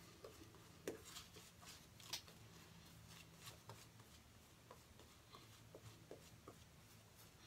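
A shaving brush swishes and squelches against lathered skin, close by.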